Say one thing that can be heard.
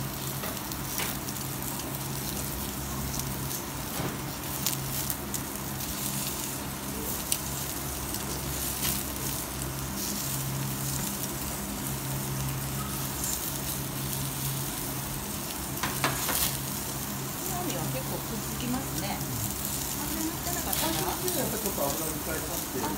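Flames roar and crackle over a grill.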